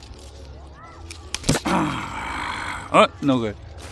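Leaves rustle as a hand grips an apple on a branch.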